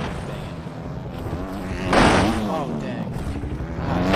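A motorbike crashes into the dirt with a thud.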